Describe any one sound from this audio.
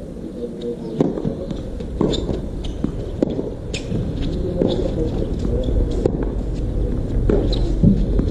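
A tennis ball is struck back and forth with rackets, each hit a sharp pop.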